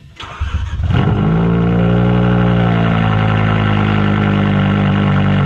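A car engine idles with a deep, steady rumble close by.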